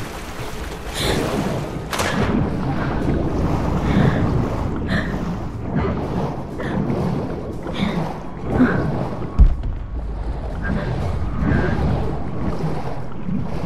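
Water swirls and churns as a diver swims underwater.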